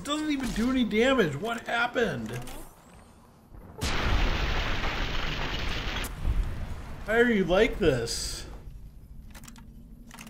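A weapon's cell is reloaded with metallic clicks.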